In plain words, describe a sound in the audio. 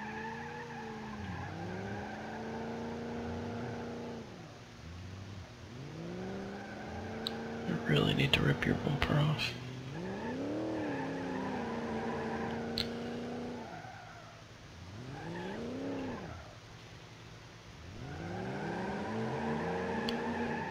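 A car engine revs up and shifts through gears.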